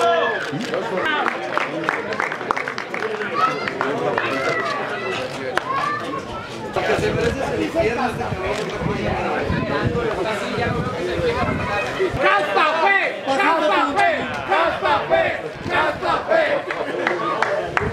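A crowd of people chatter and cheer in the background.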